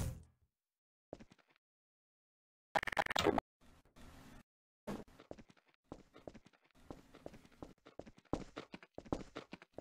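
Hard objects clatter and thud as they tumble onto the ground.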